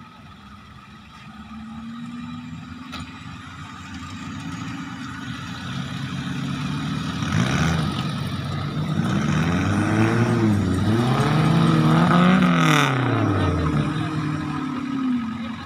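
An engine rumbles steadily at a distance.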